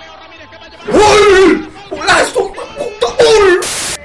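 A young man cries out in distress.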